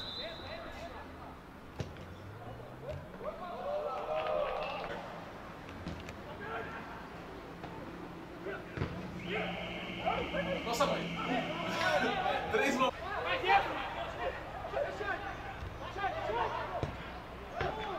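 A football thuds as a player kicks it.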